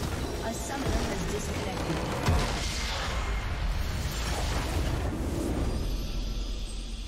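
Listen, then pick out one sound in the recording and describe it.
Game spell effects crash and burst in a loud battle.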